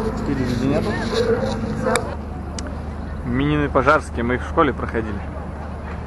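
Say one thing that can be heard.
A young man talks close by with animation.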